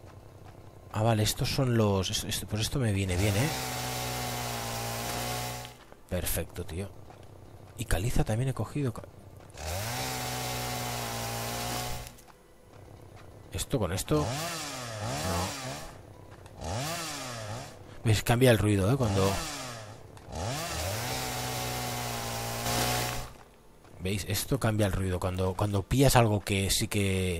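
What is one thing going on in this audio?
A chainsaw engine revs up and down in loud bursts, then idles with a steady drone.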